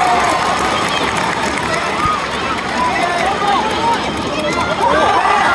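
A crowd of spectators chants and cheers loudly in an open stadium.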